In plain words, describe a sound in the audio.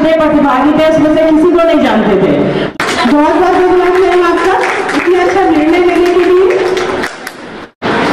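A woman speaks loudly into a microphone, heard through a loudspeaker.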